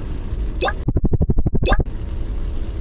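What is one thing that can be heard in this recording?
A helicopter rotor thumps rapidly.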